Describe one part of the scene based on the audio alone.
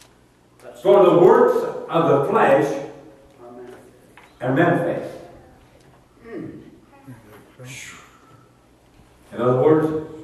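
An elderly man speaks with animation through a microphone in a room with some echo.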